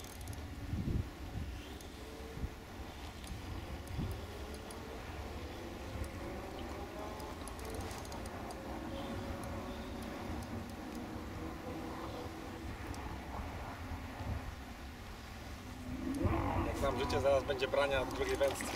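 Wind blows and rumbles across an outdoor microphone.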